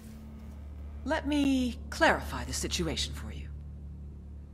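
A woman speaks tensely, close by.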